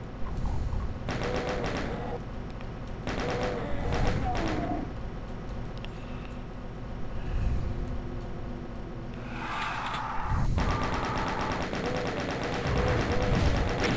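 A shotgun fires in loud, repeated blasts.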